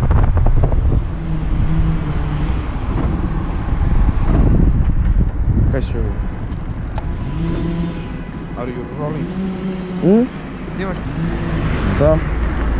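A man talks nearby in a friendly way.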